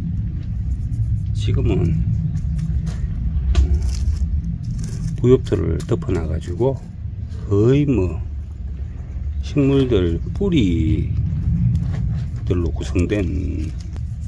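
Fingers rustle and crackle through dry leaf litter.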